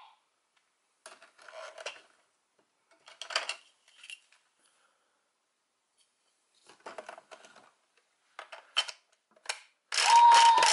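Plastic parts click and snap as a toy is handled.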